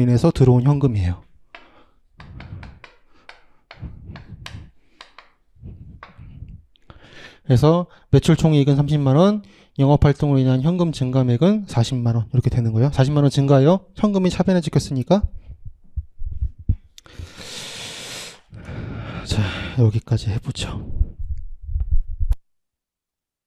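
A young man lectures with animation through a close microphone.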